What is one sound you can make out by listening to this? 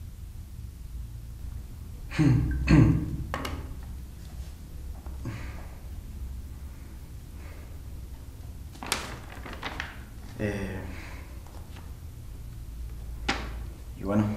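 Paper rustles in a young man's hands.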